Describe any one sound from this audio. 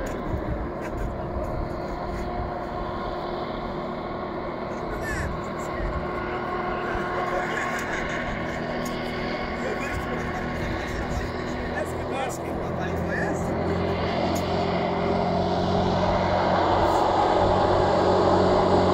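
A hovercraft engine drones steadily and grows louder as it approaches.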